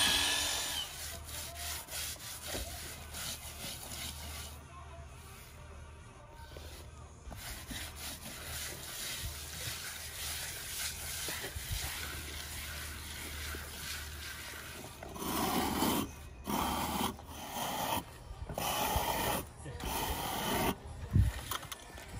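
A hand tool scrapes against a concrete wall.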